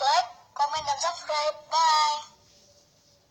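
A boy speaks cheerfully through a device's speaker.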